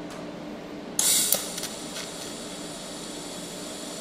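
A welding torch buzzes and crackles.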